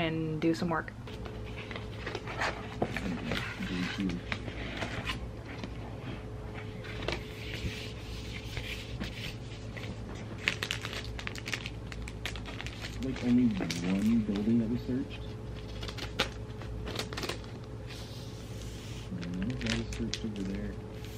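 Paper and plastic sleeves rustle and crinkle as they are handled.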